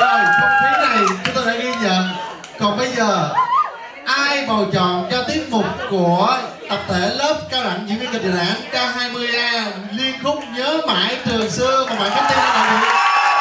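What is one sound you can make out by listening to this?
A man speaks steadily into a microphone over loudspeakers.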